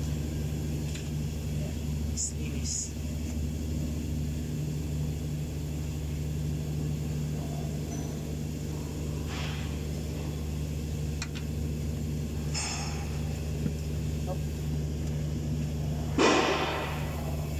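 Metal parts knock and clink now and then.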